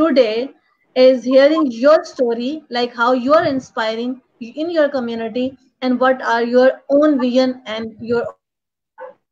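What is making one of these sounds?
A young woman talks with animation over an online call.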